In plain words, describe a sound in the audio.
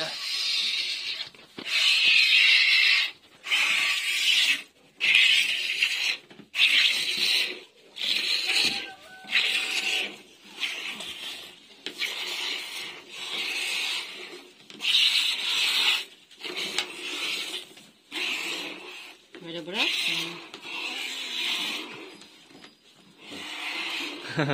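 Milk squirts into a plastic bucket in rhythmic hissing spurts.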